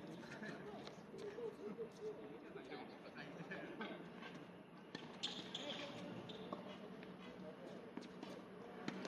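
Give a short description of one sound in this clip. Tennis balls are struck by rackets in the distance.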